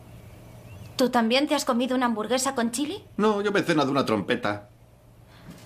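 A young woman speaks nearby in a doubtful tone.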